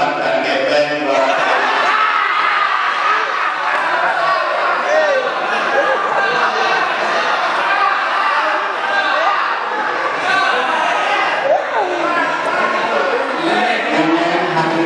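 A crowd of people talk and murmur in the background.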